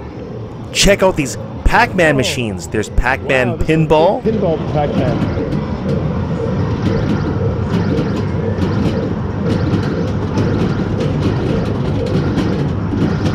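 Arcade games chime and hum steadily in the background.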